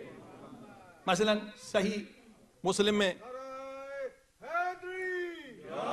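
A middle-aged man speaks and chants with feeling through a microphone.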